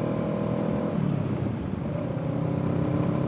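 A parallel-twin cruiser motorcycle engine drops in pitch as the throttle eases off.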